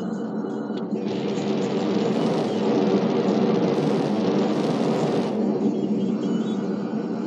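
A jetpack roars steadily.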